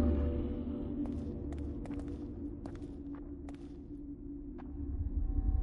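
Slow footsteps tap on a wooden floor.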